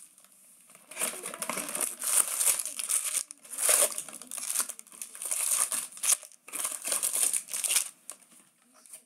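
Foil packs rustle and crinkle as they are handled.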